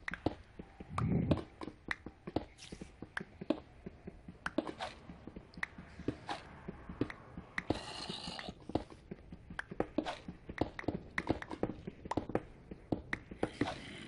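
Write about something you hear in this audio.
A pickaxe taps rapidly against stone.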